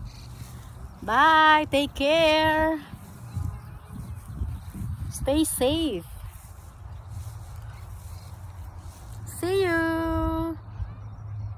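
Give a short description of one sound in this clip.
A middle-aged woman speaks close by in drawn-out, animated calls.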